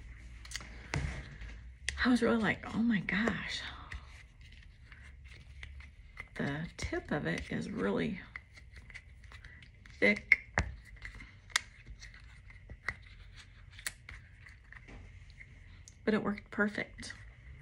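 Soft plastic creaks and taps in a woman's hands.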